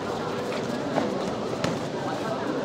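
A kick thumps on a body protector.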